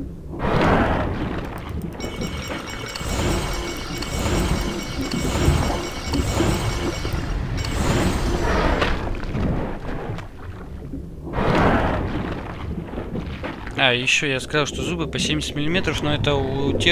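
Water swishes and whooshes as a large sea creature swims.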